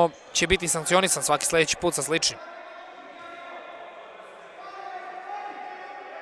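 Players' footsteps patter and squeak on a wooden floor in an echoing hall.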